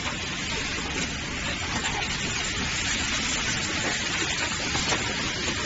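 Factory machinery hums and clatters steadily nearby.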